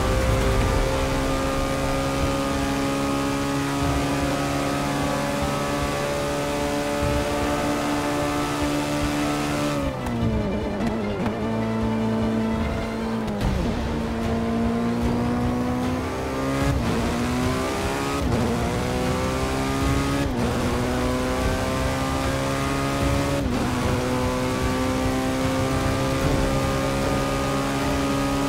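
A racing car engine roars at high speed, dropping in pitch as the driver brakes and shifts down, then climbing again through the gears.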